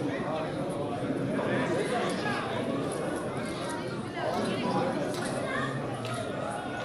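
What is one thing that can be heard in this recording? A crowd of spectators chatters and calls out across an open-air stadium.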